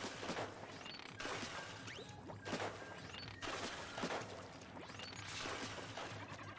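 Paint splats and squirts in quick bursts.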